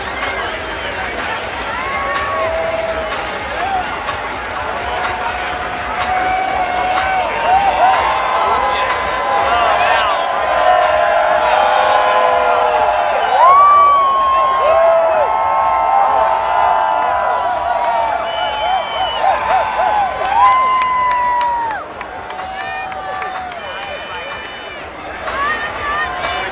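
A crowd cheers, whoops and whistles loudly outdoors.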